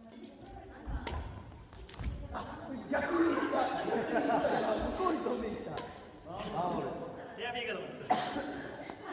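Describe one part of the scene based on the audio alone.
A racket strikes a shuttlecock with sharp pops in a large echoing hall.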